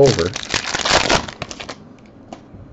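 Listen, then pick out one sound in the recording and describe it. A plastic wrapper crinkles loudly as it is torn open.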